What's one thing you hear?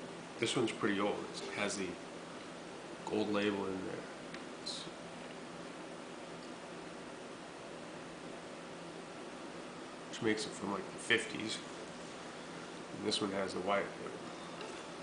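A man talks calmly close by, in short bursts.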